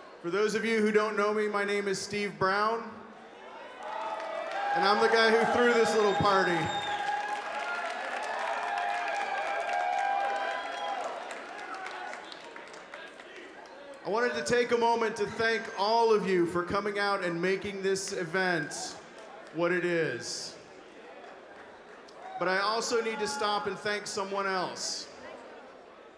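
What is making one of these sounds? A man speaks into a microphone with animation, heard through loudspeakers in a large hall.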